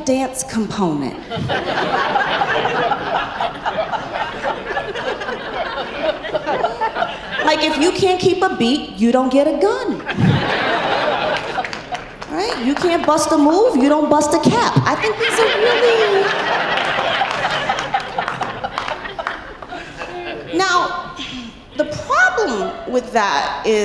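A young woman speaks with animation through a microphone in a large hall.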